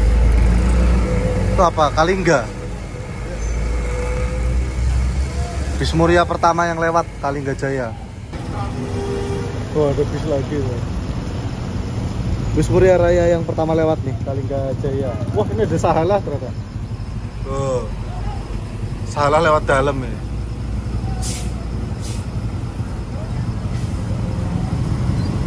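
Vehicle engines rumble as traffic drives past.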